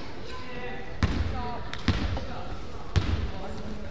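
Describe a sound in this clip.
A basketball bounces on a wooden gym floor, echoing in a large hall.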